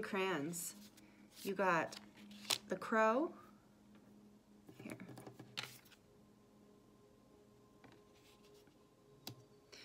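A card slides onto a wooden table with a soft tap.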